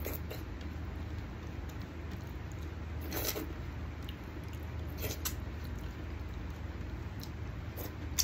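Fingers squelch through wet food on a plate.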